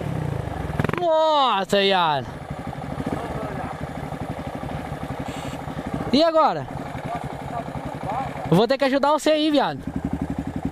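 A dirt bike engine revs hard in short bursts.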